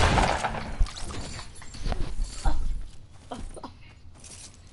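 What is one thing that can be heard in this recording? Wooden walls knock and clatter as they are quickly built.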